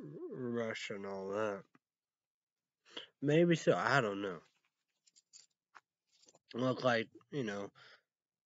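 A young man speaks casually and close to a microphone, in short bursts with pauses.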